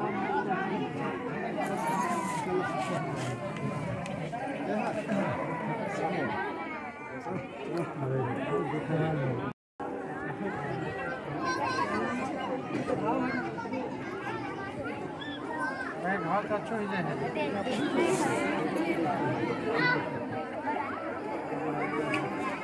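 A large outdoor crowd chatters and calls out.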